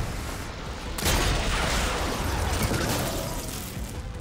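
A loud blast bursts and crackles.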